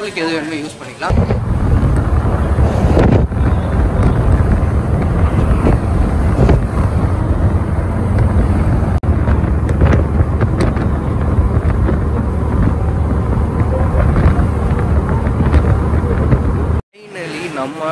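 A bus engine rumbles loudly as the bus drives along.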